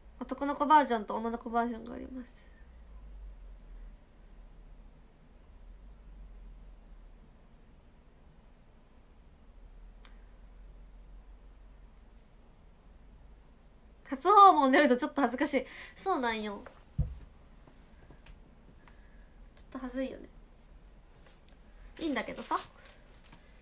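A young woman speaks softly and closely, in short bursts with pauses.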